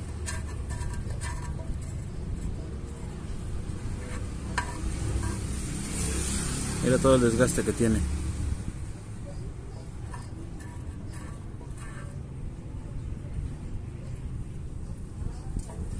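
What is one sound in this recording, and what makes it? A metal tool scrapes and taps inside a metal pan.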